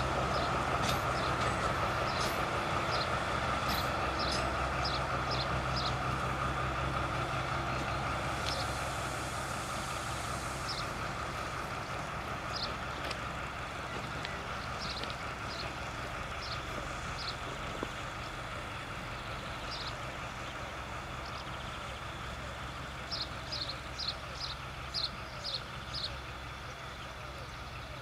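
A diesel locomotive rumbles in the distance, slowly fading as it pulls away.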